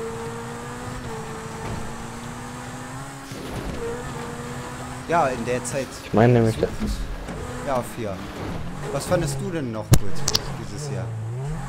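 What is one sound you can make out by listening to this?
A sports car engine hums steadily.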